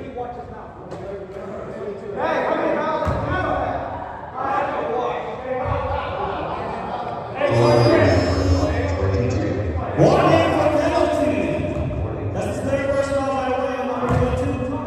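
Voices of men and young people chatter and call out, echoing in a large hall.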